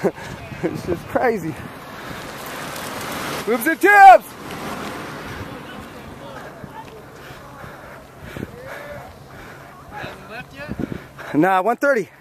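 A young man calls out loudly nearby, outdoors.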